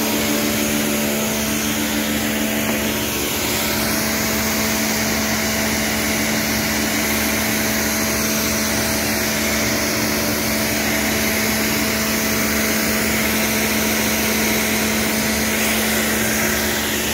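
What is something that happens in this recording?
A high-pressure water jet hisses and splashes against a hard floor.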